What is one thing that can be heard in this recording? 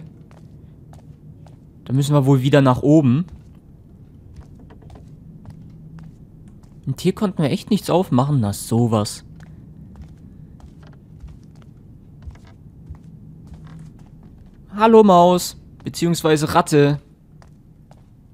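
Footsteps tread softly on a stone floor.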